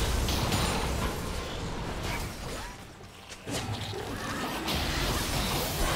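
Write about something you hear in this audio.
Fantasy combat sound effects whoosh and crackle.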